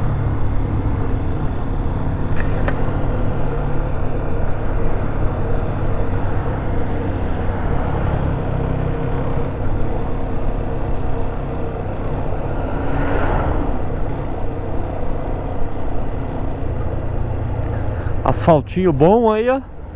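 A single-cylinder four-stroke motorcycle engine rumbles while cruising.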